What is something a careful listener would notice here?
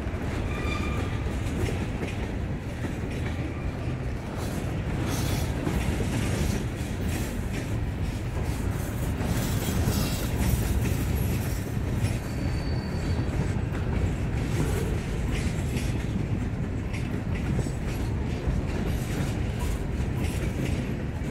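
Freight cars rumble past close by on the rails.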